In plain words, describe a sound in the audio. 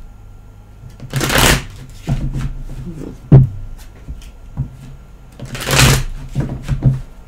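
Cards shuffle and riffle in a woman's hands.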